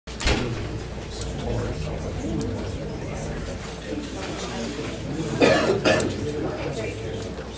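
A woman speaks into a microphone in a room.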